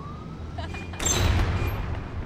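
A pair of swinging doors pushes open.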